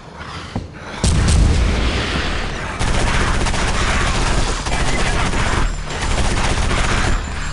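A monster growls and groans as it approaches.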